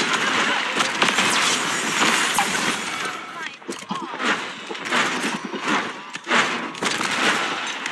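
Explosions from a game boom.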